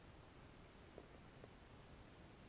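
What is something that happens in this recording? A metal tether clip clicks twice.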